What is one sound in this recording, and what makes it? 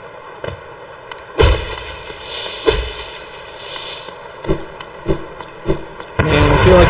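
Small footsteps tap on stone.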